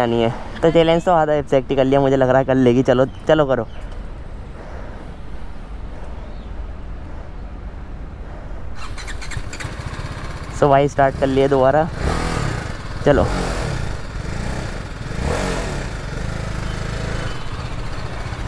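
A motorcycle engine idles with a low rumble.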